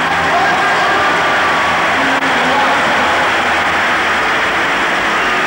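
A large stadium crowd cheers and roars steadily.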